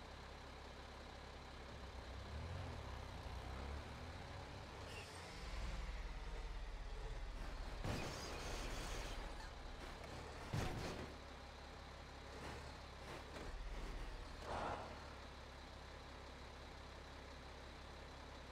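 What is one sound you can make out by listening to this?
A heavy truck engine rumbles and revs.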